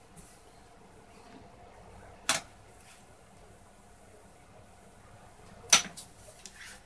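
Gaming chips click together as a hand moves them.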